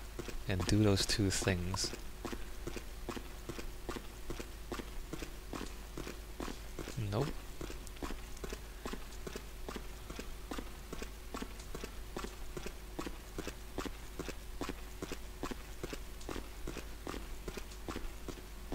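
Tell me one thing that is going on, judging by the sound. Footsteps tread steadily and echo along a tunnel.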